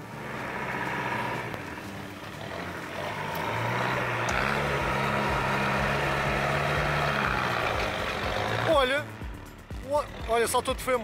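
Tyres grind slowly over rock and dirt.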